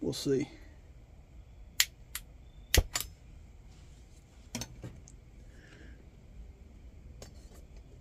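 Metal parts clink and clatter as they are set down.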